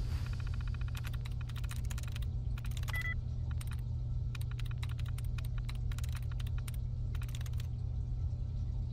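Keys on a computer terminal click rapidly in short bursts.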